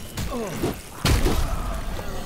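A creature growls and strikes with a sudden loud hit.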